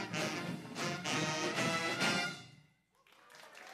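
A band plays in a large hall.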